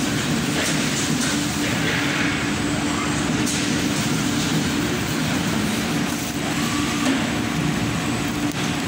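Factory machinery hums loudly and steadily in a large hall.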